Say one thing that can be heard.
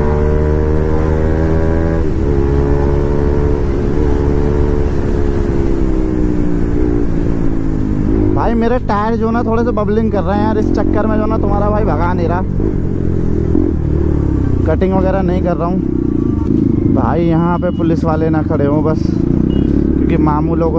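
A motorcycle engine hums steadily and shifts in pitch as the bike rides along.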